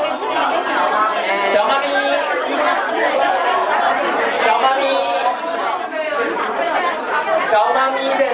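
A crowd of women chatters close by, with many overlapping voices.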